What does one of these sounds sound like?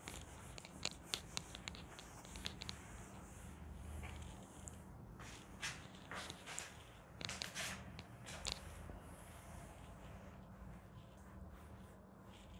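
A cloth rubs and wipes across a board.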